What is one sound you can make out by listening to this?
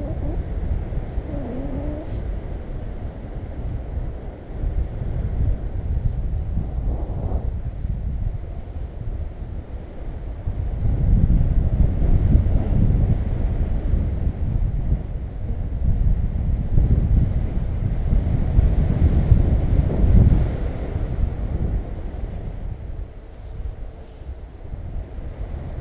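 Wind rushes and buffets the microphone in flight.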